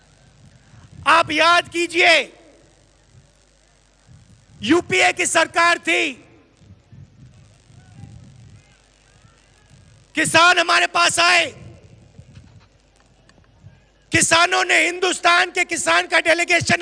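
A man gives a forceful speech through a microphone and loudspeakers, in bursts with pauses.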